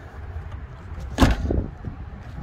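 A car's trunk lid thumps shut.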